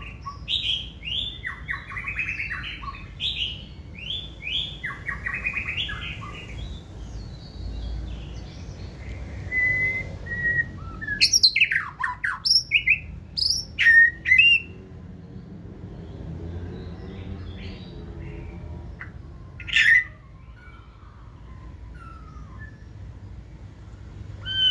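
A caged songbird sings loud, varied phrases of chirps and whistles close by.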